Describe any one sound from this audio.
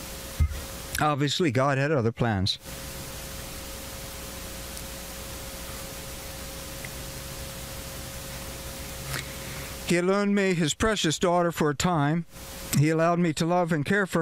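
An elderly man speaks calmly into a microphone outdoors, with pauses.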